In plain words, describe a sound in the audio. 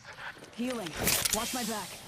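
A medical syringe hisses as it is used.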